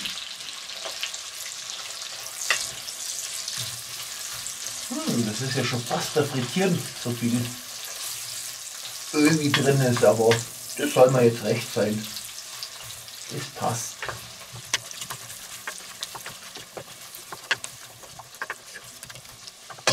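A spatula scrapes and stirs food in a metal pot.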